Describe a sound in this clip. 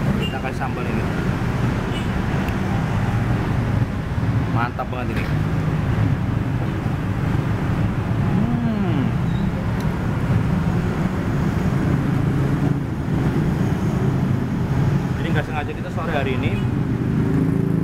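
A young man talks close by.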